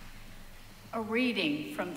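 A woman begins speaking into a microphone in a large echoing hall.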